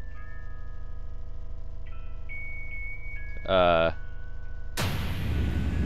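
A music box plays a slow tinkling tune.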